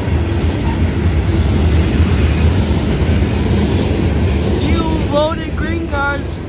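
Freight cars rumble and clatter steadily along the track close by.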